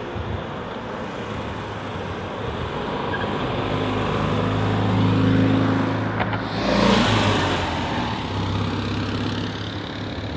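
A small car drives past on the road, its engine rising and fading.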